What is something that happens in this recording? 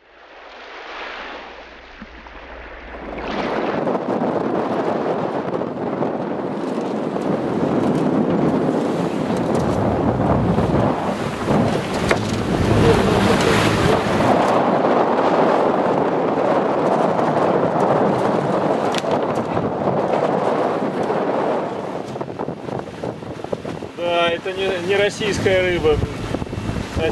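Waves rush and splash against a sailing boat's hull.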